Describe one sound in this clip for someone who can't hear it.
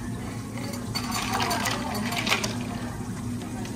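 Ice cubes clatter and rattle into a plastic cup.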